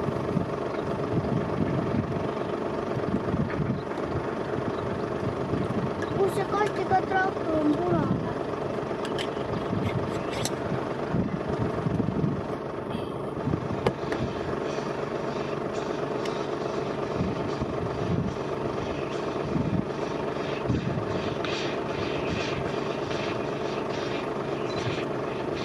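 A tractor engine rumbles steadily at a distance.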